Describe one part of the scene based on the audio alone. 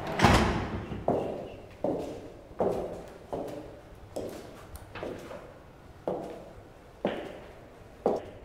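Footsteps echo at a steady pace in a reverberant space.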